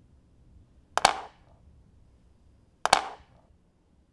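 Wooden chess pieces clack down on a board.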